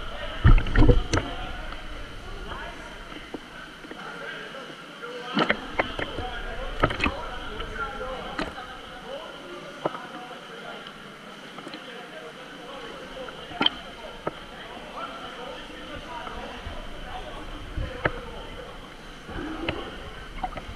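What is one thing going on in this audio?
Water splashes and laps close by in a large echoing hall.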